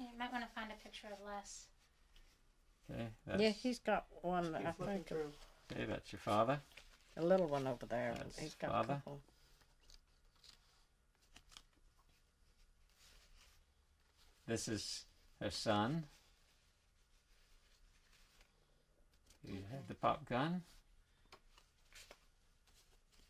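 Old photographs rustle softly as hands shuffle them.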